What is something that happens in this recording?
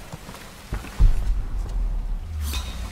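A heavy thud of someone landing on rock after a drop.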